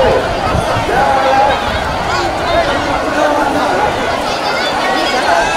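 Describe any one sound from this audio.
A large outdoor crowd of men and women shouts and cheers loudly.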